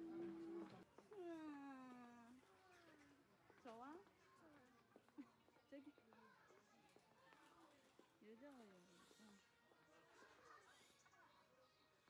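A young girl talks excitedly nearby.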